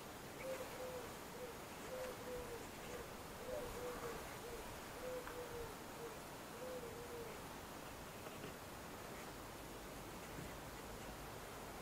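Foam rubs softly against a metal car door.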